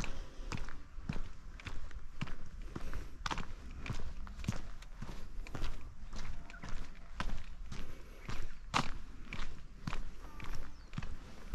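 Footsteps tread steadily on a paved path outdoors.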